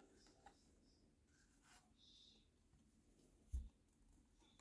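Paper cards rustle softly as a hand picks them up.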